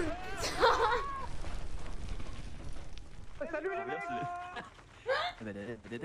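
A young man talks excitedly into a microphone, close by.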